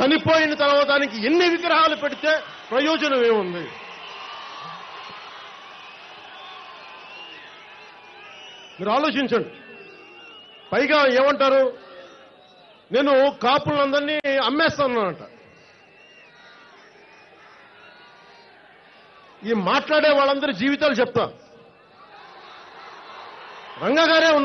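A man shouts forcefully into a microphone over loudspeakers.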